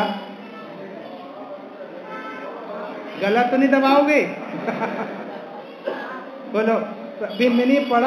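A man chants in a sustained, melodic voice through a microphone in an echoing room.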